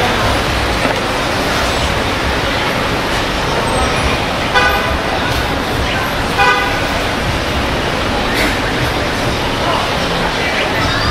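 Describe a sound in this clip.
A busy city street rumbles with a steady hum of traffic nearby.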